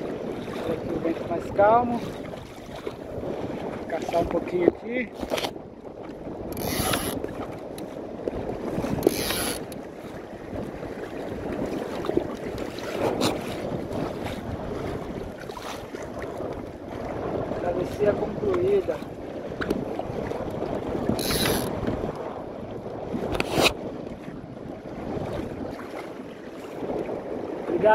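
Water splashes and laps against the hull of a small boat.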